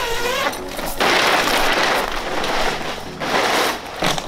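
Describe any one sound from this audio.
Tent fabric rustles and flaps as it is pulled open.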